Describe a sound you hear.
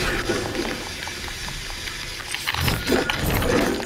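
Electric bolts crackle and boom.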